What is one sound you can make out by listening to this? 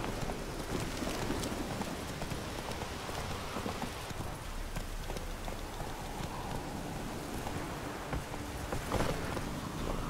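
A horse gallops along a dirt track.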